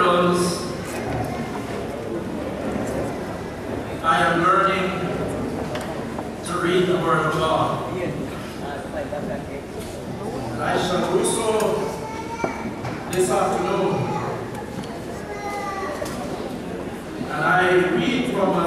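A man speaks steadily into a microphone over loudspeakers in a large echoing hall.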